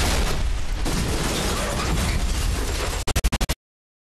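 A car crashes and tumbles with a loud rumbling roar.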